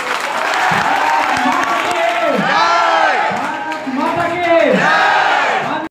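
Young people sing through loudspeakers in a large room.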